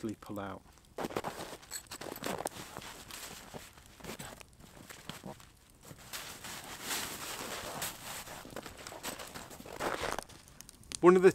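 A tarp rustles and crinkles as it is spread out on the ground.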